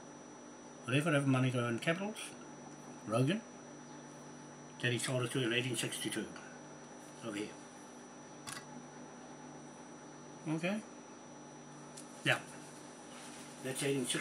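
A man speaks calmly close by, in short bursts.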